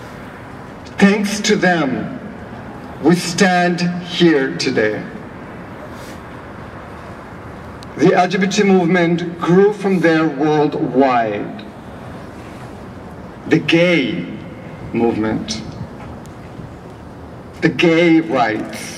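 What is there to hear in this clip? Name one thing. A woman speaks into a microphone outdoors, in short phrases with pauses.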